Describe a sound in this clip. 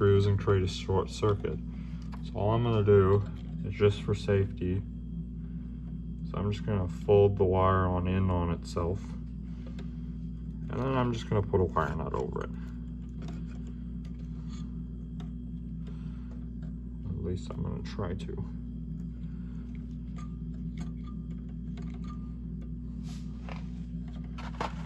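Small plastic and metal parts click and knock together.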